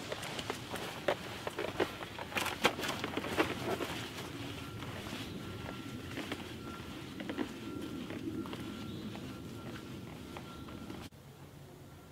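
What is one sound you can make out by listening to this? Footsteps crunch on a dirt trail close by and fade away.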